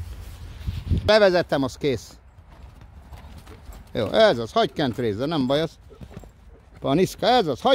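Horse hooves thud softly on a dirt track as a horse trots past close by.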